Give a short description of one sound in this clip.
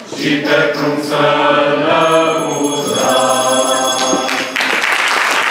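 A mixed group of men and women sings together.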